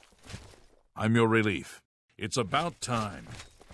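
A second man answers gruffly in a game character's voice.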